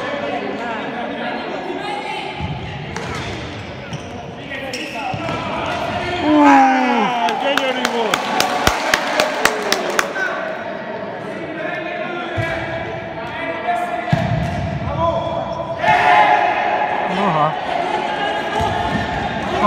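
Spectators shout and cheer in an echoing indoor hall.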